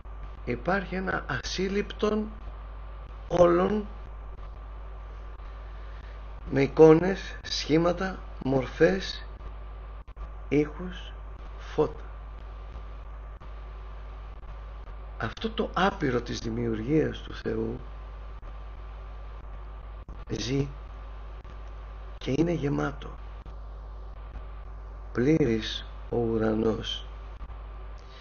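A man speaks calmly through a microphone, in bursts with pauses.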